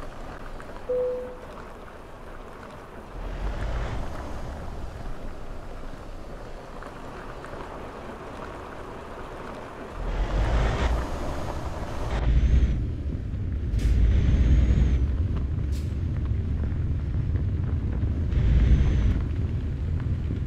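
A truck's engine rumbles low as it pulls away and drives on.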